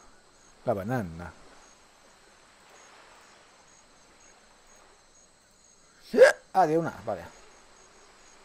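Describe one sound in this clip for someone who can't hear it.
Waves wash gently onto a shore.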